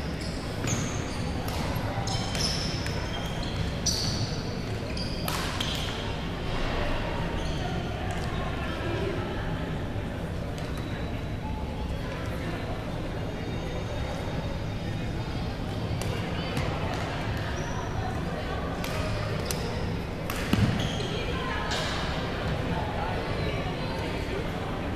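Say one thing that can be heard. Shuttlecocks are struck with sharp racket pops, echoing around a large hall.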